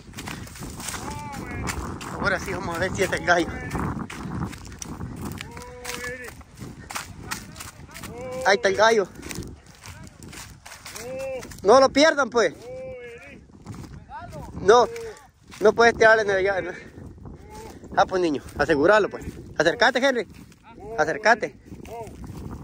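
Footsteps crunch through dry corn stalks.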